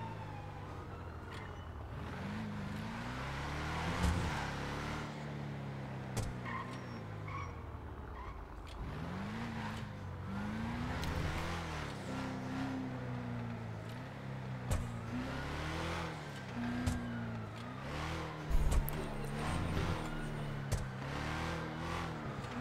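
A car engine revs and roars, rising and falling in pitch as the car speeds through the streets.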